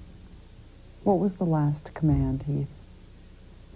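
A woman speaks calmly and seriously, close by.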